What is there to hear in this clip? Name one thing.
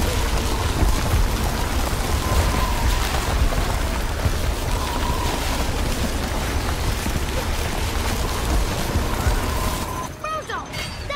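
An ice beam blasts with a steady roaring hiss.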